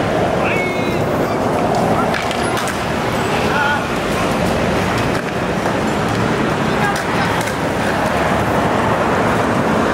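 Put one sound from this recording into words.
A bus drives by.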